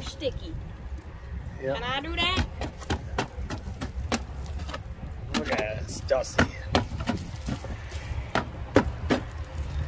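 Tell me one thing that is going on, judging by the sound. A metal tool scrapes and knocks against a muddy tyre.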